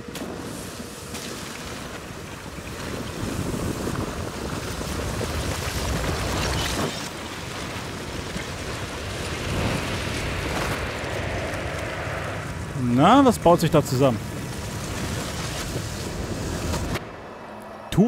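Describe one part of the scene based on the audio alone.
Wind rustles through dense trees.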